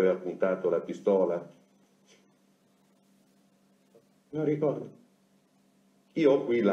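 A man speaks calmly and close, in short phrases with pauses.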